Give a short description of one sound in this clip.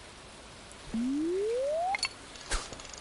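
A rising electronic whoosh sounds as a fishing line is cast.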